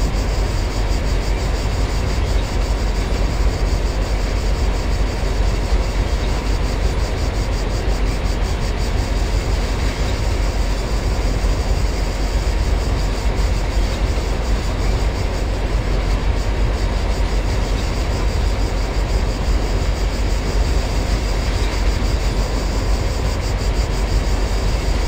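A train rumbles steadily along the tracks from inside the cab.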